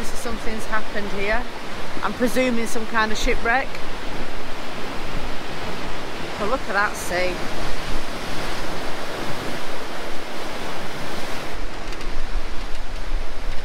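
Waves crash and churn against rocks close by.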